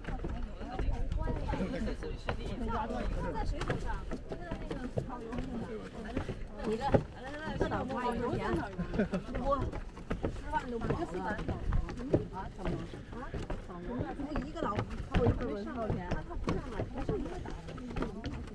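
A group of adults chat nearby.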